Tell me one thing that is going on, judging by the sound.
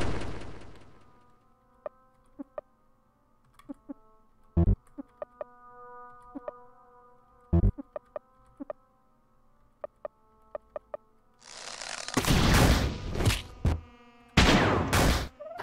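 Chiptune music plays with steady tones.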